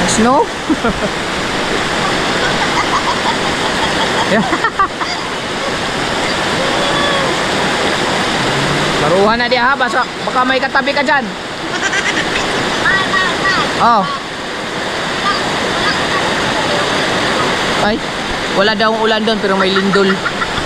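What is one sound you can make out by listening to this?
A woman laughs and talks through a phone's speaker.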